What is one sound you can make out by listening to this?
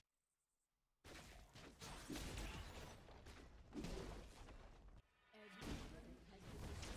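Spells crackle and clash in a busy fight.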